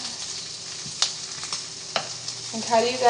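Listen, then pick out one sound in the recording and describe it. A utensil clinks against a frying pan.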